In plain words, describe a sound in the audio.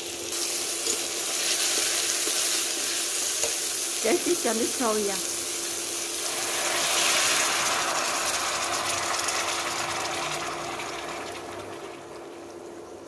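Food sizzles and hisses in a hot pot.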